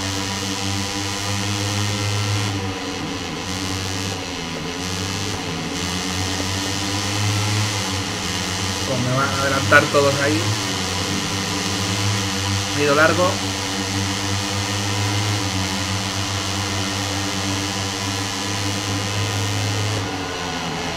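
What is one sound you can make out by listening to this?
A motorcycle engine drones and revs steadily, shifting pitch through gear changes.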